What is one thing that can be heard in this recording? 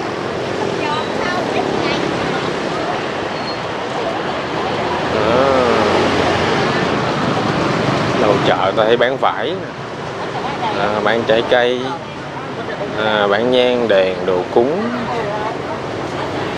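Men and women chatter and call out all around, with some voices close by.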